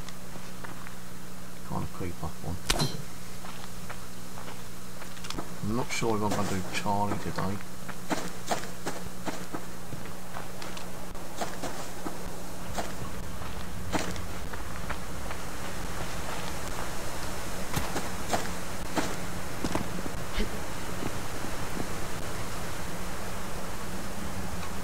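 Footsteps crunch steadily through grass and gravel.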